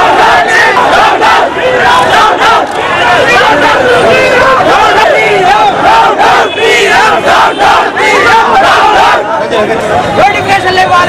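A crowd of young men shouts slogans loudly outdoors.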